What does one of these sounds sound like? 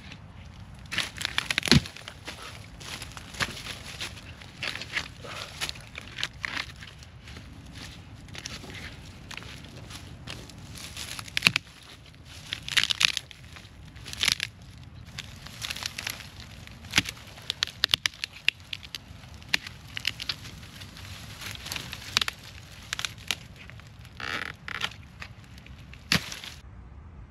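Dry branches crack and snap as they are broken by hand.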